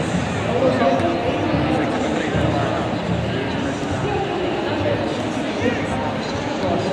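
A crowd murmurs and chatters throughout a large open stadium.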